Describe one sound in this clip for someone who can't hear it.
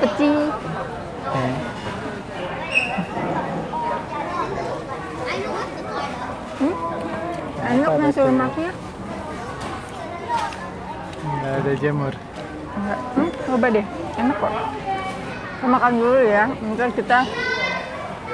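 A woman talks and reacts with animation, close by.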